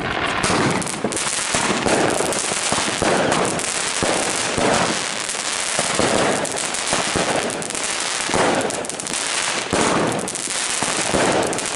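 Fireworks burst with loud bangs.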